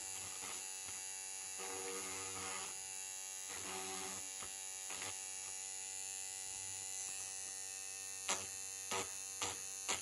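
An electric trimmer buzzes steadily close by.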